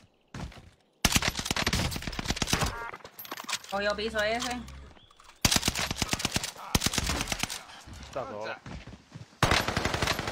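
Rapid gunfire bursts loudly in quick rattling volleys.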